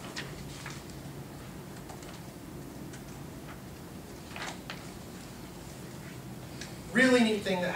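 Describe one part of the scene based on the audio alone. A man speaks calmly from across a room.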